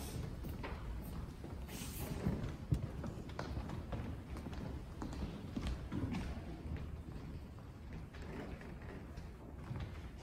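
Footsteps walk on a hard floor in a large echoing hall.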